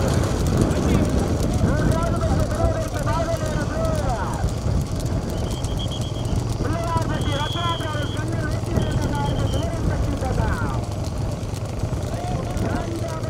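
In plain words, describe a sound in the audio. Hooves clop on a paved road.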